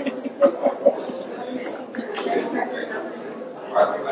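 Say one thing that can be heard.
A woman laughs nearby.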